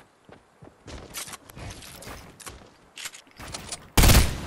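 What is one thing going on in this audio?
Footsteps tap on wooden floors.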